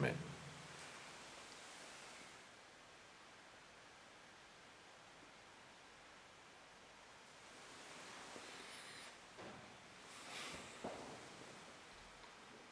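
An elderly man speaks softly into a nearby microphone.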